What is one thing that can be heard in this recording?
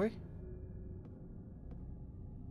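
Footsteps tap on a wooden floor.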